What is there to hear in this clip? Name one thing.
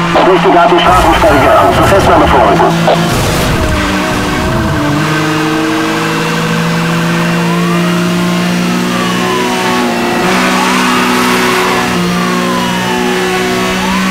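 A race car engine roars at high speed.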